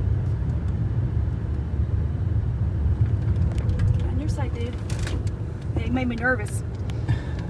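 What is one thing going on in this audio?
A car engine hums low with steady road rumble from inside the car.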